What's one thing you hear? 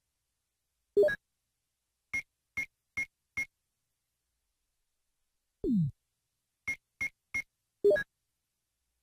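A louder electronic chime confirms a menu choice.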